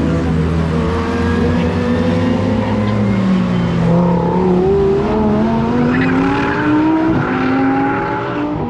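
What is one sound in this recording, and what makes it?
Powerful car engines roar and rev as cars speed past.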